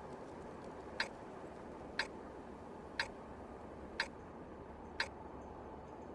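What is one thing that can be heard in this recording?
A countdown timer beeps once a second.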